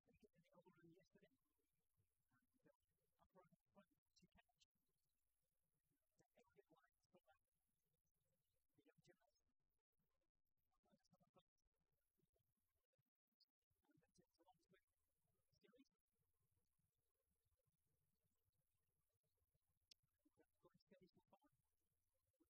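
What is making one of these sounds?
A gymnast's hands thump and grip on wooden bars.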